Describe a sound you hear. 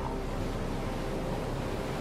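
Waves wash onto a shore nearby.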